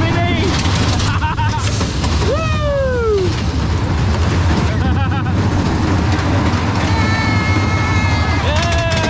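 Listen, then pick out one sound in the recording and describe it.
A roller coaster rattles and clatters along its track.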